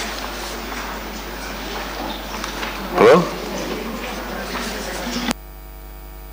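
Paper rustles.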